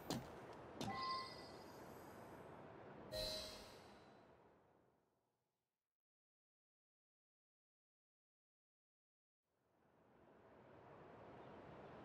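Wind blows high up and returns after a silence.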